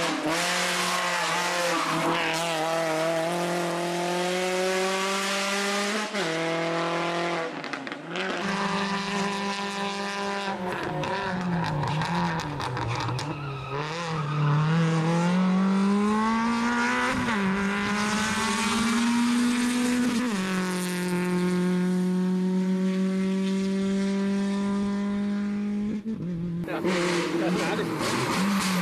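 A rally car engine roars and revs hard, rising and falling as the car speeds past.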